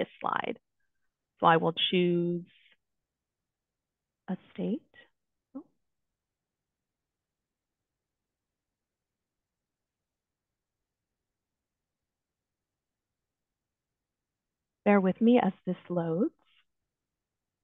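A woman speaks calmly over an online call, in short bursts with long pauses.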